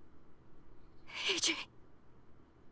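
A young woman speaks softly and fearfully.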